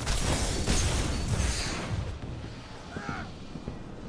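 A loud electric blast crackles and booms.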